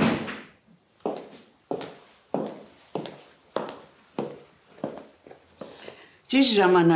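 High heels click on a hard floor.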